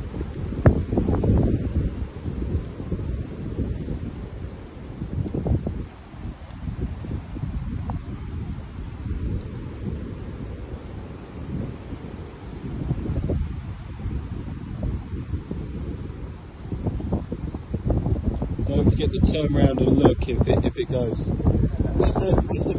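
Wind rumbles outdoors across a microphone.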